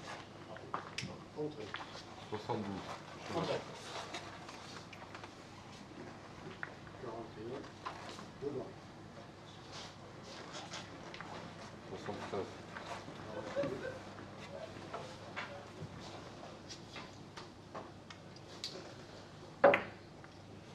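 Billiard balls click sharply together.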